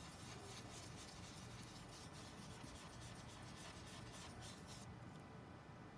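A sponge dabs and brushes softly on paper.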